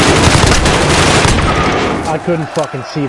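Rapid gunfire rattles loudly.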